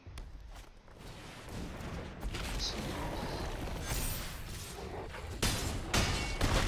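A magical whoosh and rumble of a game effect swells and bursts.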